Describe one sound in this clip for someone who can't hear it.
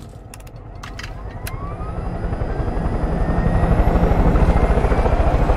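A helicopter engine starts and its whine rises as the rotor spins up.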